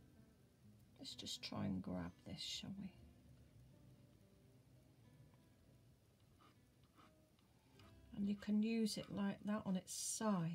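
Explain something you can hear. Chalk scratches softly on paper.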